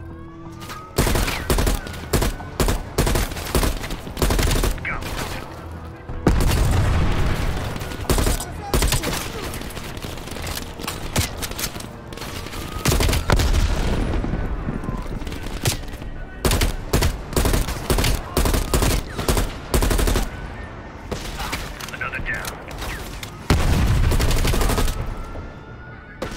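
Rifle shots ring out in quick bursts, loud and close.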